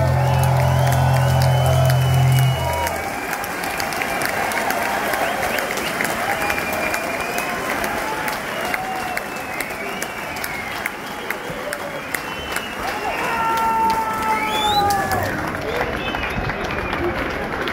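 A drummer hits drums and cymbals.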